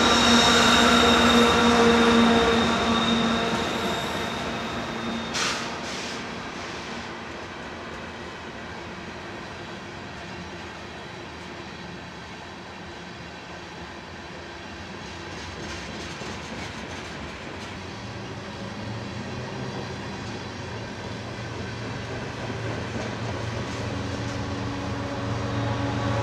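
Freight cars roll past with a steady clatter of wheels on rails.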